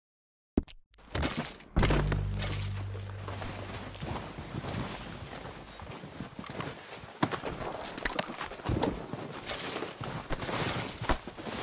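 Boots crunch through snow.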